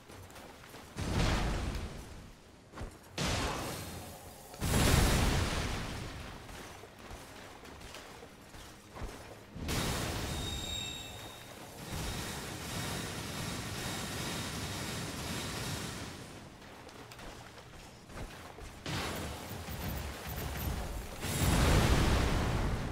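Heavy blows and impacts crash in a fight.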